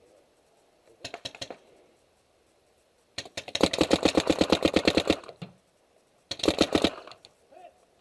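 A paintball gun fires rapid bursts of shots close by.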